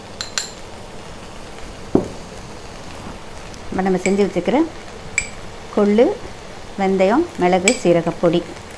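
A metal spoon clinks against a small bowl.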